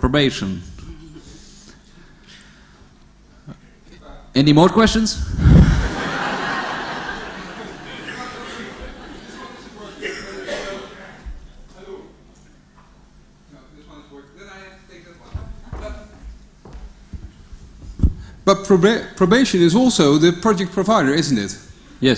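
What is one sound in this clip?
A man speaks into a microphone, heard over loudspeakers in a large echoing hall.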